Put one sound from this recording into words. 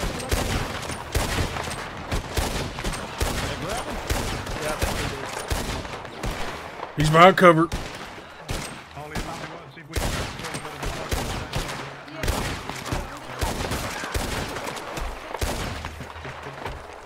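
Pistol shots ring out in quick succession, echoing outdoors.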